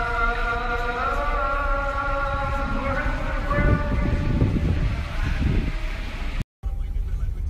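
A man chants a long melodic call through a loudspeaker, echoing outdoors.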